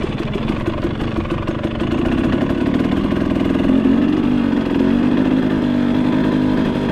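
A dirt bike engine rumbles and revs up close.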